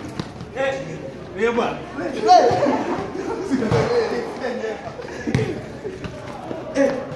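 Young men talk and call out with animation nearby.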